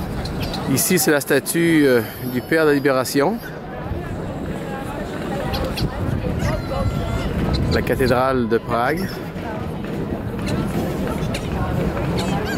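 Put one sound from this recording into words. A crowd murmurs outdoors in an open square.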